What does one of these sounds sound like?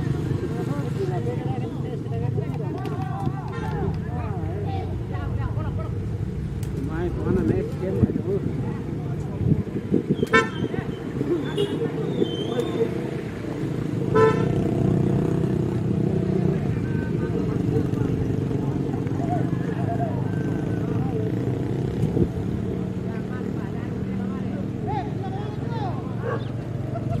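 A crowd of men and women chatters and calls out outdoors nearby.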